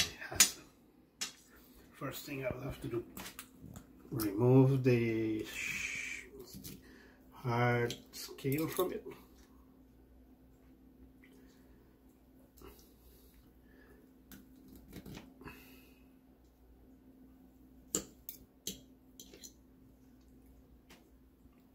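A fork and knife clink and scrape against a plate.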